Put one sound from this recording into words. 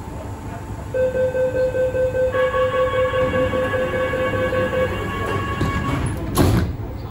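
A door warning beeps rapidly over and over.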